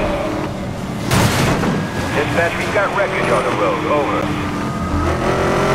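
Tyres screech as a car slides through a turn.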